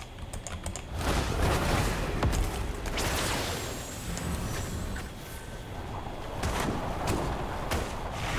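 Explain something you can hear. Fire spells whoosh and crackle in a game's sound effects.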